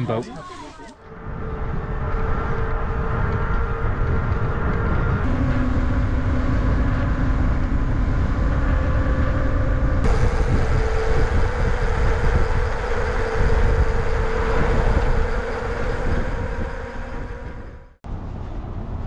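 Wind rushes loudly past a fast-moving bicycle.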